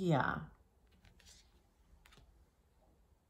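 A card slides softly across a wooden table.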